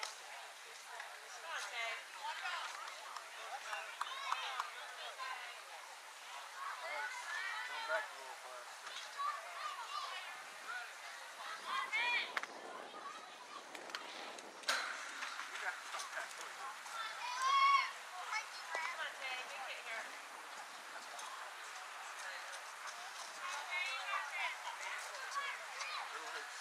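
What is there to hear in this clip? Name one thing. Young girls shout and cheer outdoors across an open field.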